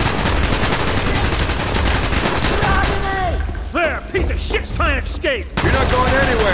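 Rapid gunfire echoes through a tunnel.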